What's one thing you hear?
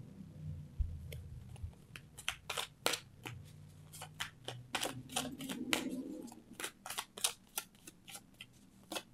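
Playing cards shuffle with quick, crisp riffling clicks.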